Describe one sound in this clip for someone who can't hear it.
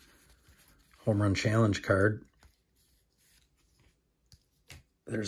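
Cards rustle and slide against each other in hands.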